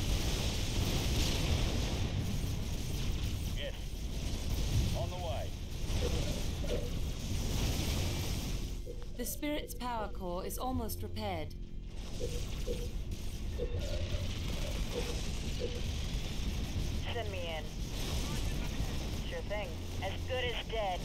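Weapons fire and explosions boom in a battle.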